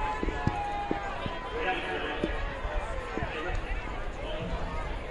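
A crowd of spectators murmurs and chatters in an open-air stadium.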